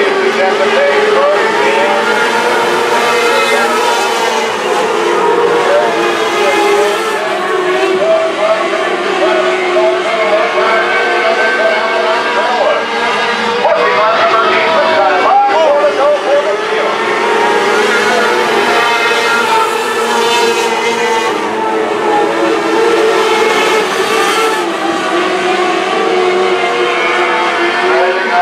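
Many race car engines roar loudly and steadily, rising and falling in pitch.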